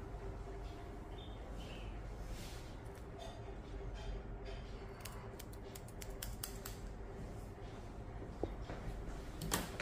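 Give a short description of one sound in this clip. Scissors snip rapidly close by.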